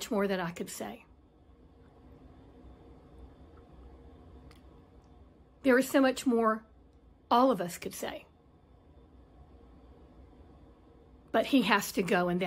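An older woman speaks calmly and close, in short phrases with pauses.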